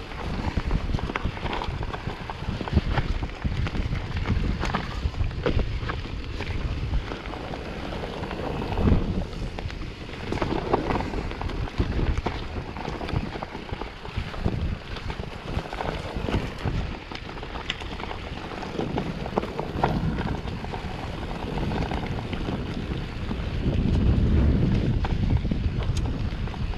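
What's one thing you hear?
A bicycle frame rattles and clicks over bumps.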